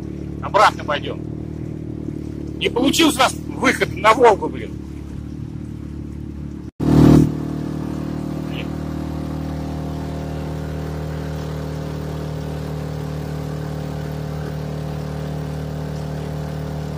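An outboard motor drones steadily close by.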